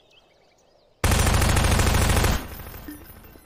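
A submachine gun fires a long automatic burst.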